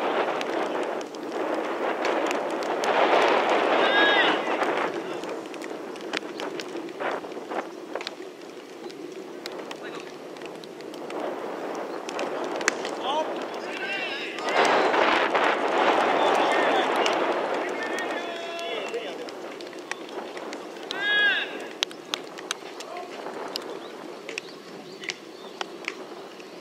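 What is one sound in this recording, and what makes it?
Young men call out to each other across an open outdoor field.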